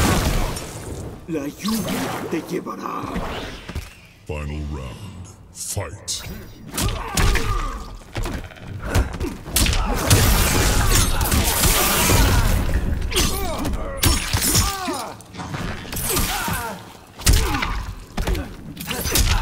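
Fighters' bodies crash to the ground.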